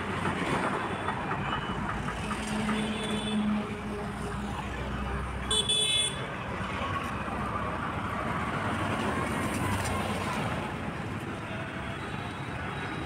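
Auto-rickshaw engines idle and rumble in busy street traffic.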